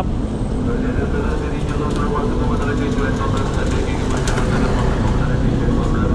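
A motorbike engine hums as it rides past nearby.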